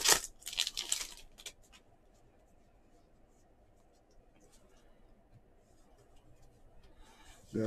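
Cards rustle and slide as hands shuffle through a stack.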